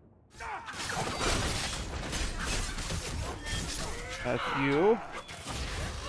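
Blades clash and slash in a fast fight.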